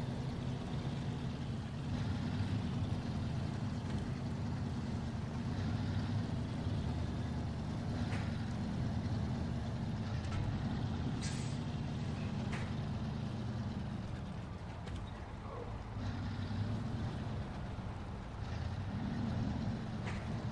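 A truck engine rumbles steadily as the truck drives slowly over rough ground.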